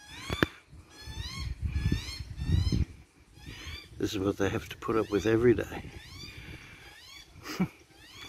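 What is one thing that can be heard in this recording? A small bird chirps and whistles nearby, outdoors.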